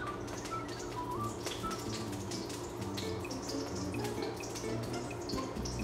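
Oil pours from a bottle into a metal pan.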